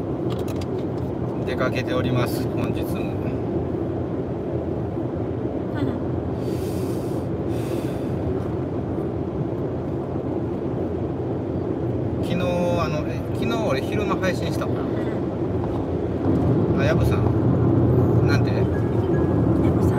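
A car engine hums steadily, heard from inside.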